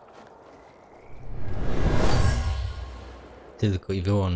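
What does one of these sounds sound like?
A deep rumbling whoosh swells and fades.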